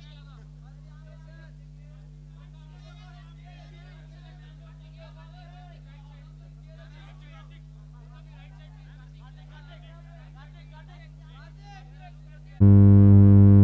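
A crowd of men and women chatter faintly in the background.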